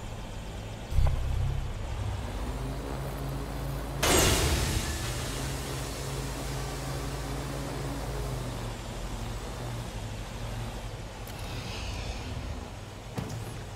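A drone's propellers whir and hum steadily.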